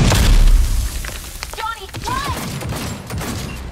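Pistol shots ring out sharply.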